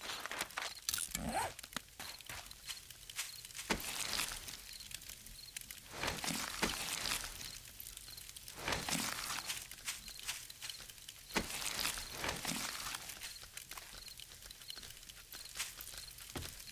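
Footsteps crunch through dry brush.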